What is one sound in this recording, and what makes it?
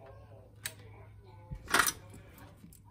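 Small electronic parts click softly as fingers handle them.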